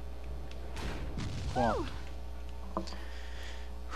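A heavy metal door slams shut.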